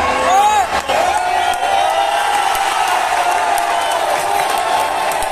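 A huge stadium crowd cheers and chants loudly.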